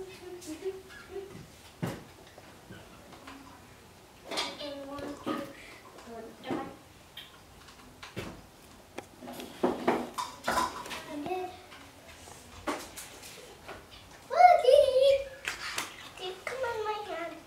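A young girl talks softly nearby.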